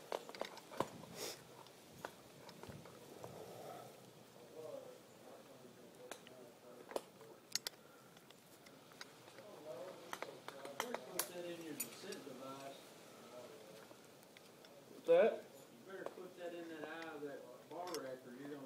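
Metal climbing gear clinks and jingles.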